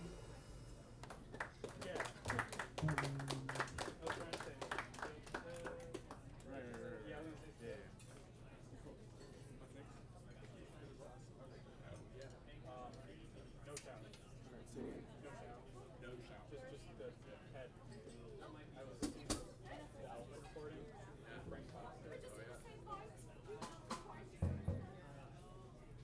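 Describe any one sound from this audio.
Drums are played with brushes and cymbals.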